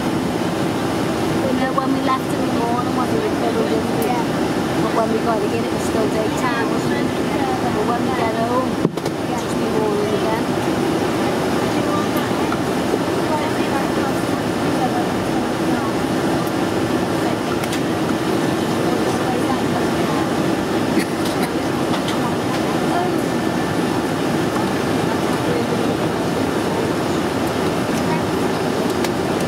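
A jet airliner's engines drone steadily as it taxis, heard from inside the cabin.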